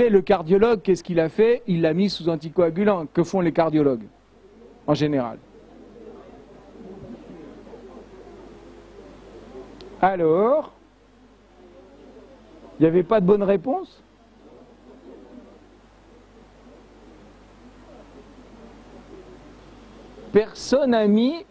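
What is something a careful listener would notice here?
A middle-aged man speaks calmly into a microphone in an echoing hall, pausing often.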